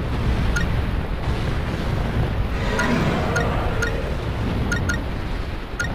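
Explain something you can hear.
Short electronic menu blips chime now and then.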